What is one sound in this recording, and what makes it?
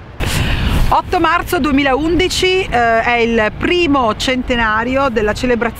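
A middle-aged woman speaks calmly, close to a microphone.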